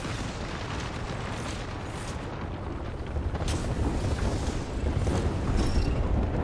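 A video game shield recharge hums steadily.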